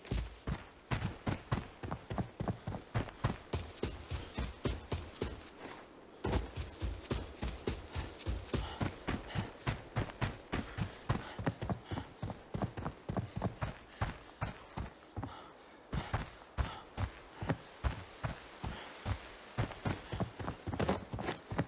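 Quick footsteps thud over grass and rock.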